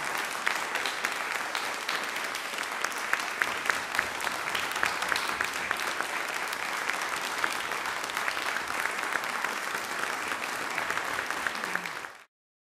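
An audience applauds warmly in a room with some echo.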